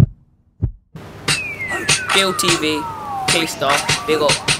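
A young man raps close by.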